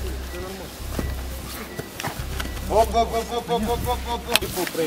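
Men scuffle and thud onto the grass.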